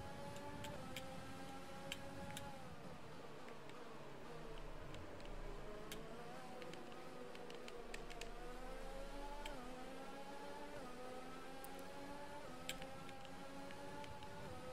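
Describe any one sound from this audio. A racing car engine whines at high revs, dropping in pitch as it slows into turns and rising again as it speeds up.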